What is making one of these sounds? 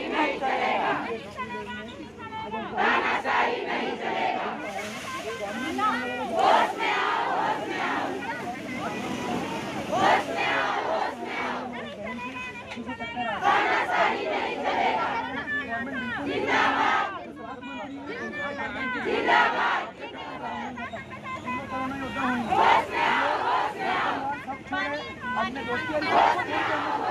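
A crowd of women shout and talk excitedly close by, outdoors.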